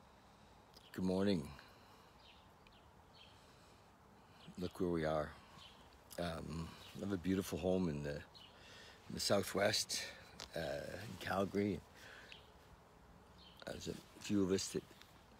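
An elderly man speaks calmly and close to the microphone, with pauses.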